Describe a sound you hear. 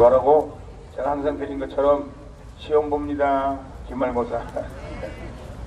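A middle-aged man speaks calmly through a microphone and loudspeaker outdoors.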